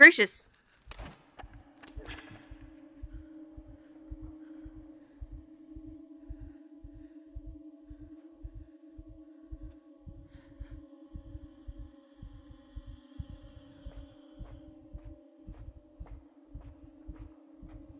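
Many footsteps tread in a steady rhythm on a hard floor.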